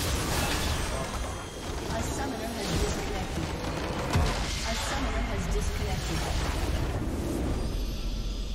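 Video game spell effects whoosh and crackle.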